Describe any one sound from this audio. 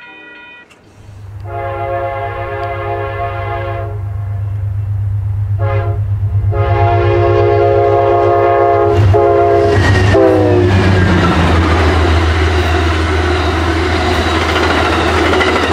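A diesel locomotive engine rumbles as it approaches.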